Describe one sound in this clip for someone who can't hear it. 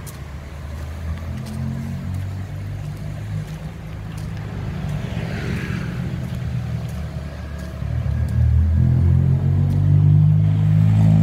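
Motorbike engines rumble past on a nearby road, growing louder.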